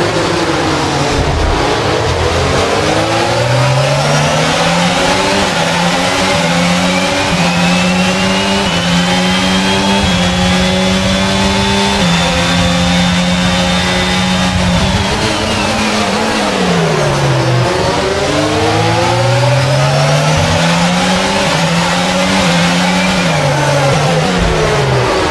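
A racing car engine screams, rising through the gears and dropping sharply when braking.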